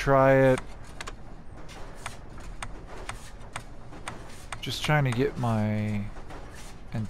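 Short menu clicks tick as a cursor steps through a list.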